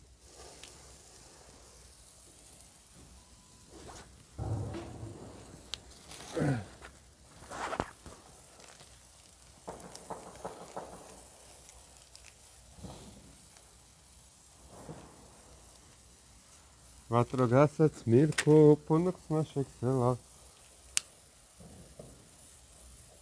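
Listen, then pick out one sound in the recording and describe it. A flare hisses and sputters as it burns.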